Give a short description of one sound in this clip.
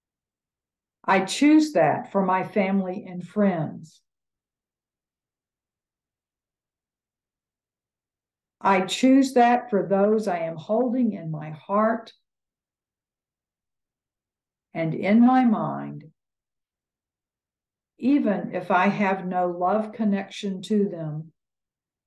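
An elderly woman speaks calmly over an online call, in short bursts with pauses.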